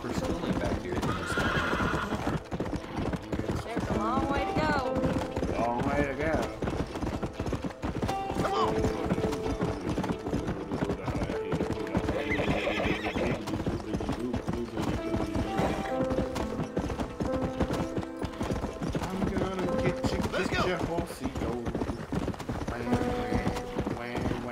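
A horse gallops with rapid hoofbeats.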